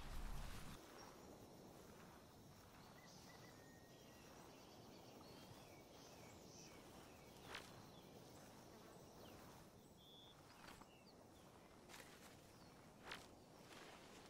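Footsteps rustle through tall grass and leaves.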